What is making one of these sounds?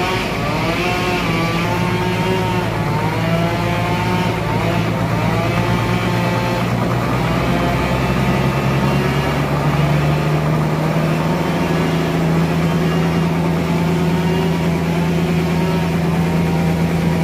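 A diesel engine runs with a steady low rumble.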